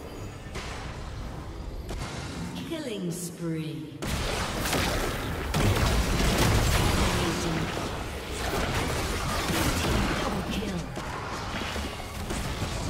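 Weapons strike and clash in quick hits.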